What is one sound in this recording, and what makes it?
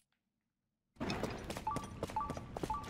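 A rough crunching rumble of game effects plays.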